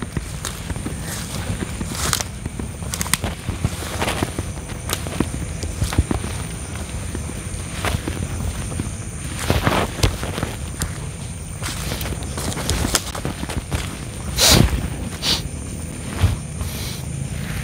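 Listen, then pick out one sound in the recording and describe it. Footsteps rustle through dry undergrowth.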